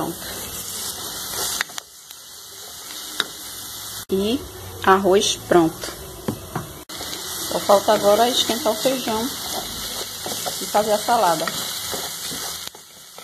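A wooden spoon scrapes against a pot while stirring.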